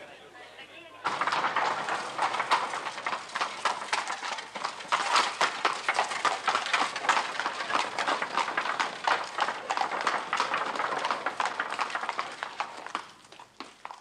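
Horse hooves clatter on cobblestones.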